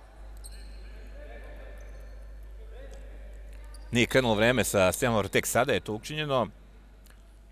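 A small crowd murmurs faintly in a large echoing hall.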